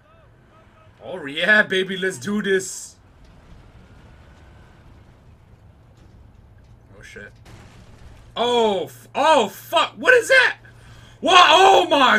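A man shouts urgently nearby.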